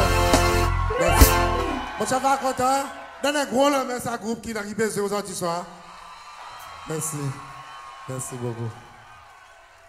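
A man sings into a microphone over loudspeakers in a large hall.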